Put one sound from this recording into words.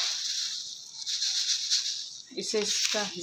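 Dry grains pour into a pot with a soft hiss.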